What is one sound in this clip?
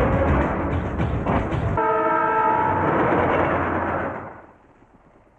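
A train rumbles past loudly.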